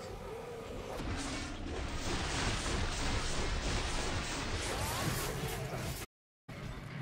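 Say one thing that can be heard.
Monsters snarl and shriek close by.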